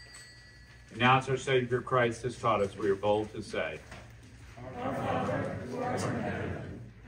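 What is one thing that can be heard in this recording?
A man speaks aloud, close to a microphone, in a softly echoing room.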